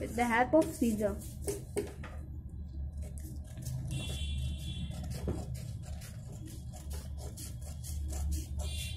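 Paper rustles and crinkles as it is folded and moved.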